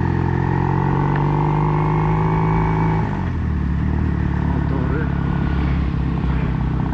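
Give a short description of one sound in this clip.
A motorcycle engine hums steadily while riding, its pitch shifting partway through.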